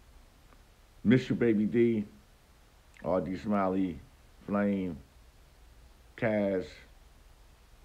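A middle-aged man speaks calmly in short phrases, close to the microphone.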